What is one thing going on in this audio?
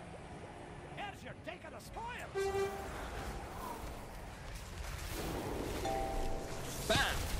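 Spell effects crackle and chime as a game character fights.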